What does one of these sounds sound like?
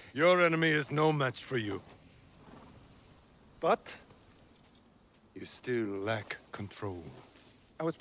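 A man speaks calmly and with a chuckle, close by.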